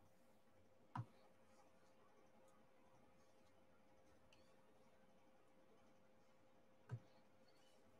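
A plastic pen tip taps softly as it presses small beads into place.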